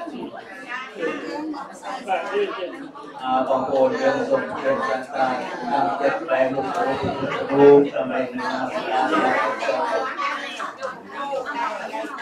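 A man speaks steadily into a microphone, heard through a loudspeaker in an echoing room.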